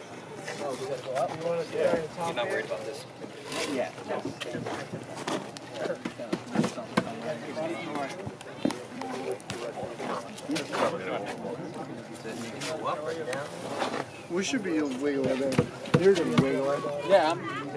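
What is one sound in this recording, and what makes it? Several men talk and call out to each other nearby, outdoors.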